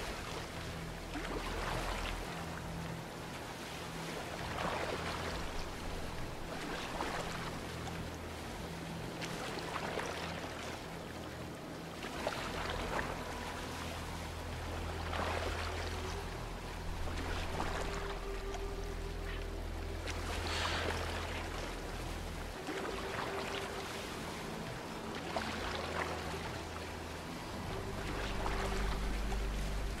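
A pole splashes into water again and again.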